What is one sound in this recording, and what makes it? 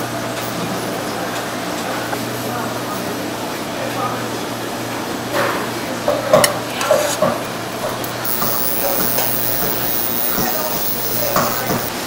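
A knife slices softly through raw fish.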